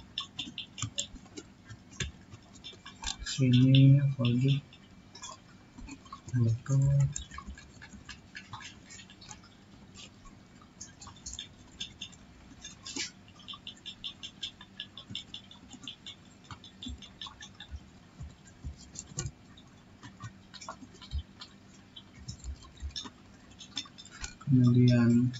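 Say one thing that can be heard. Keyboard keys click in quick bursts of typing.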